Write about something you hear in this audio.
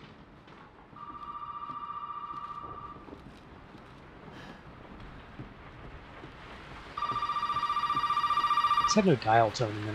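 A telephone rings in short bursts.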